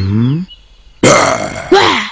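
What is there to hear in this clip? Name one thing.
A man shouts angrily, close by.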